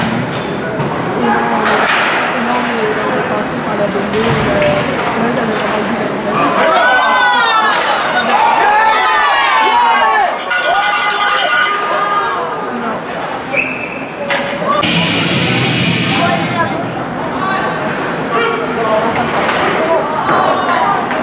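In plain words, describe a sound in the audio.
A crowd of spectators chatters and cheers loudly in a large echoing arena.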